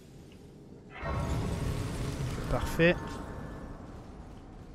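A shimmering magical chime swells up.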